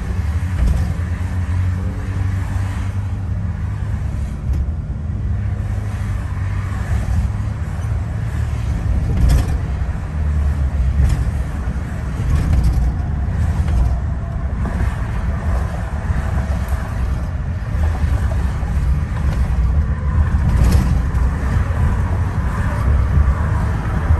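A car's engine and tyres rumble steadily on a highway, heard from inside the car.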